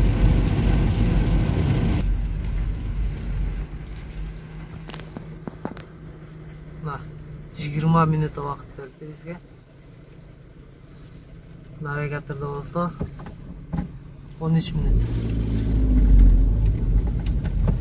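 A car drives along a wet road with tyres hissing.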